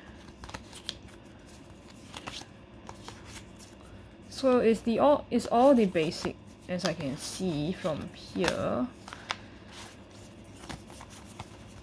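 Playing cards rustle and click as they are shuffled through by hand.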